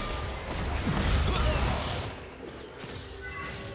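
Magic blasts and weapon clashes burst loudly in a fight.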